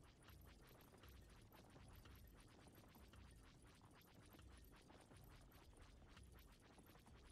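A spacecraft engine rumbles steadily.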